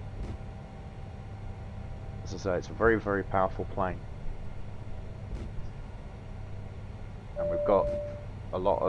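A jet engine hums low and steady as an airliner rolls along a runway.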